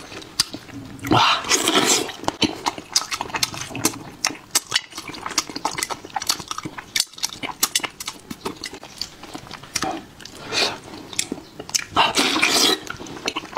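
Food crunches and squelches as a man tears it apart with his hands.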